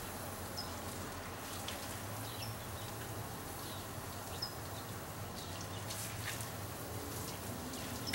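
Water sprays steadily from a garden hose onto leaves.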